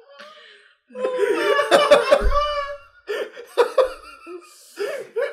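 A young man laughs loudly close to a microphone.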